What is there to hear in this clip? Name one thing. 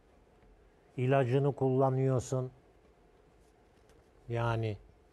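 A man speaks calmly and clearly through a microphone.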